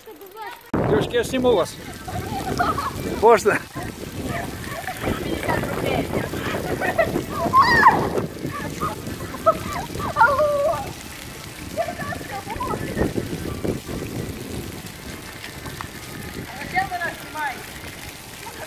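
A young woman laughs and squeals nearby.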